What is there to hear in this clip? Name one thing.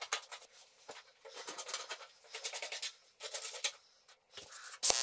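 Metal pieces clink softly against a metal table.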